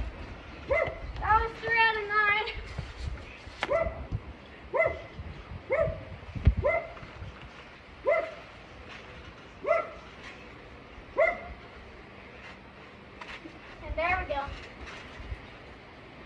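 A trampoline creaks and thumps as a child bounces.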